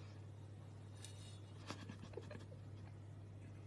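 A cat licks and smacks at food close by.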